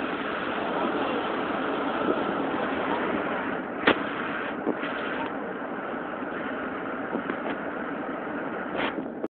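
A car drives steadily along a road, with road and wind noise heard from inside.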